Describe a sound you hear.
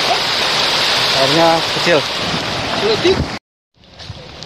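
A stream rushes over rocks.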